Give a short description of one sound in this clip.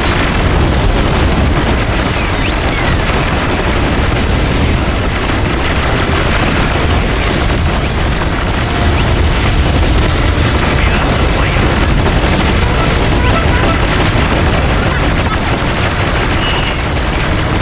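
Guns fire and shells explode in rapid bursts.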